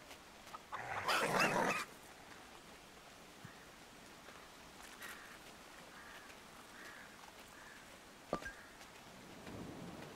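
A small animal's paws patter softly through grass.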